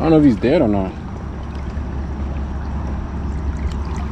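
A hand splashes into the water.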